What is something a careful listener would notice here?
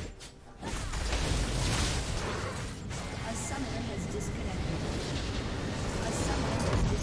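Game battle effects crackle and clash.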